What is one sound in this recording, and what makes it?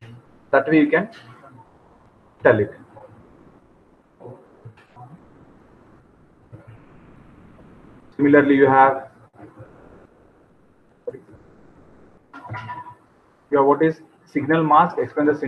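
A young man speaks calmly into a microphone, in short bursts with pauses.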